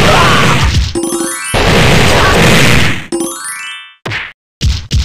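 Coins jingle in quick rising chimes.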